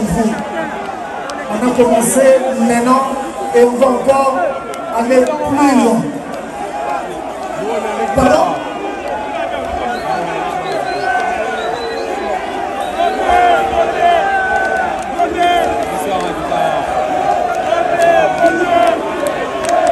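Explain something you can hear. A man sings through loud speakers, echoing outdoors.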